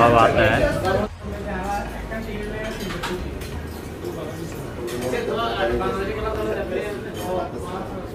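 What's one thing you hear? A young man talks over an online call.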